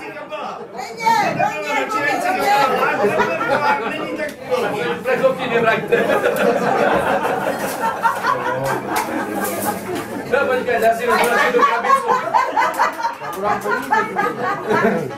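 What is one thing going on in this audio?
A crowd chatters and laughs in the background.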